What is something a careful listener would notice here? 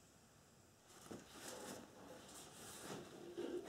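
A plastic funnel knocks and rustles as hands lift it out.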